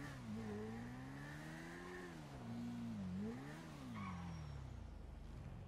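A motorcycle engine revs up and down.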